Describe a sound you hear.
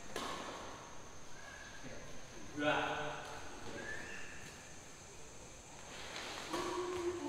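A badminton racket strikes a shuttlecock in an echoing hall.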